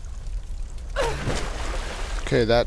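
Water rushes and roars close by.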